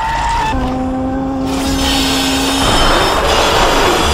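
A ghostly figure gives off an eerie, wavering hum.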